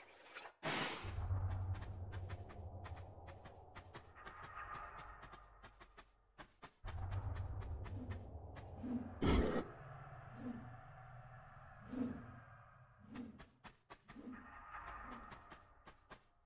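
Footsteps patter quickly on a stone floor.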